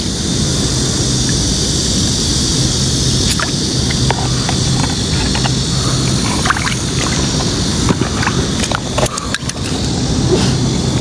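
Shallow water gently ripples over stones.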